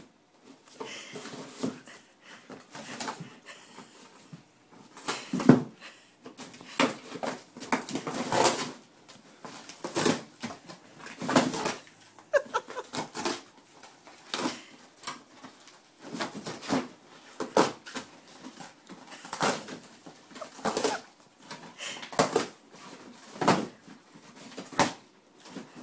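A dog tears and rips cardboard with its teeth.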